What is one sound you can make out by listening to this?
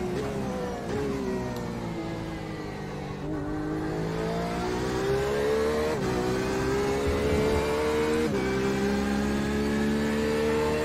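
A racing car engine roars, its pitch dropping sharply at each gear change and climbing steadily between.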